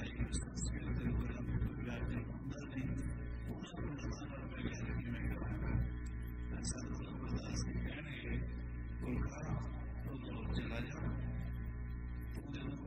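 An elderly man speaks steadily and calmly through a microphone.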